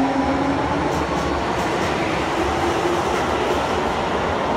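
A train's wheels whine as it speeds up.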